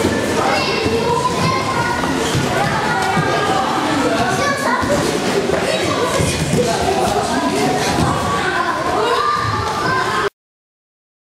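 Bare feet thud and patter on mats.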